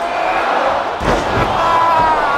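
A body thuds heavily onto a mat.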